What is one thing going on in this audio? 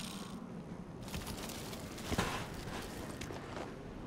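A metal case clicks open.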